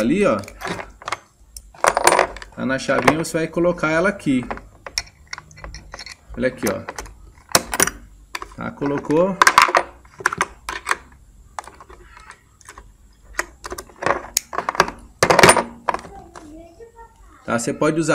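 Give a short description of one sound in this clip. Small metal tool bits click and clatter as they are handled.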